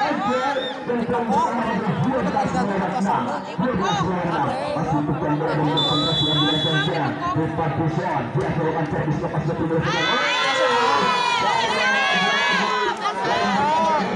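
A large outdoor crowd chatters and cheers loudly.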